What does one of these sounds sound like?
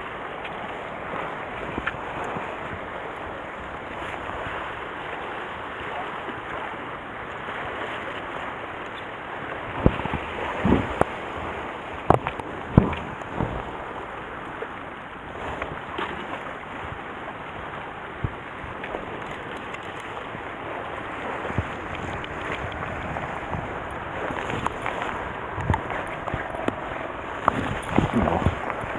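Wind blows steadily outdoors by the sea.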